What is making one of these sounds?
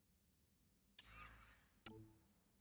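An electronic whoosh sweeps as a game menu changes.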